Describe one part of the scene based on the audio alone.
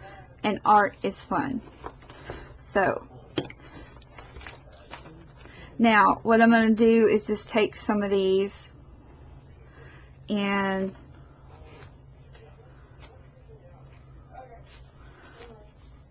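Fabric trim rustles softly as hands press it onto a shoe.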